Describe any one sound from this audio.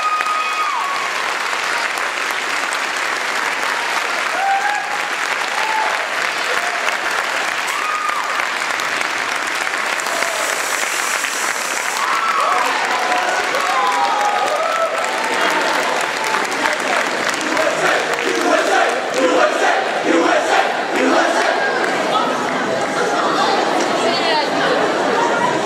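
A large choir sings together in a big echoing hall.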